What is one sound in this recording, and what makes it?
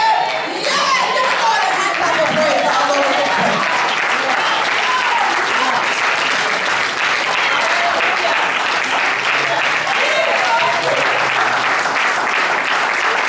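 A crowd claps and cheers.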